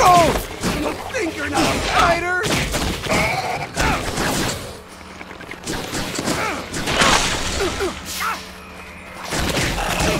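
Electric energy blasts crackle and zap.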